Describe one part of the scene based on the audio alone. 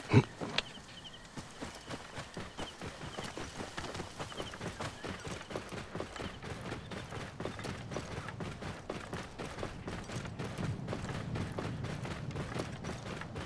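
A camel's hooves gallop over sand in a steady rhythm.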